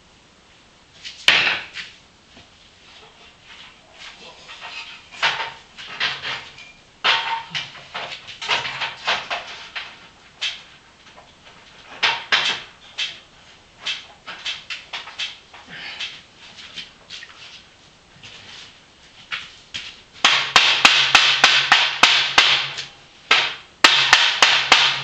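Metal poles clank and scrape as they are handled up close.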